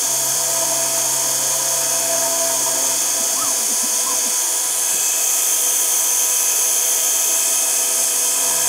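A milling machine cutter whines steadily as it carves through plastic.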